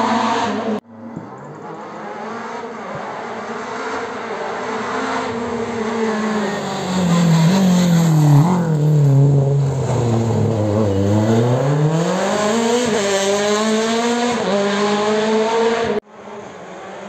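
A second rally car races close by, its engine roaring up and down through the gears.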